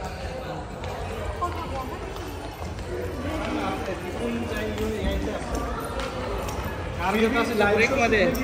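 A crowd of men and women chatter nearby in a large echoing hall.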